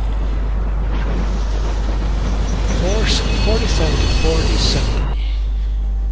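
A train rumbles closer along the tracks, growing louder.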